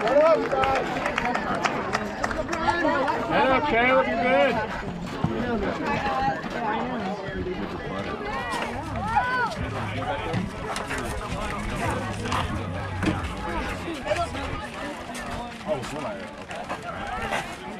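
A crowd of spectators cheers and shouts outdoors.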